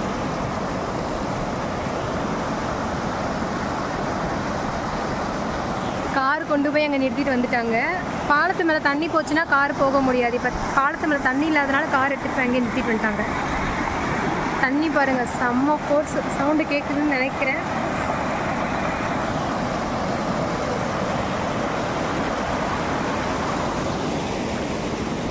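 Fast water rushes and churns over rocks close by.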